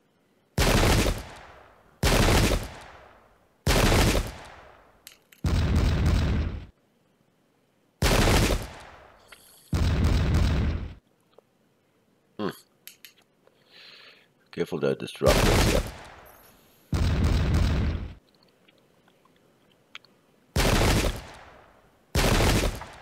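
Muskets fire in loud, sudden volleys that echo away.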